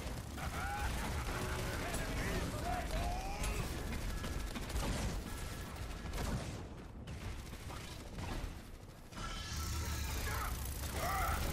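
Rapid energy gunfire crackles.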